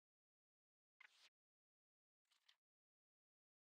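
A game menu makes short clicking chimes.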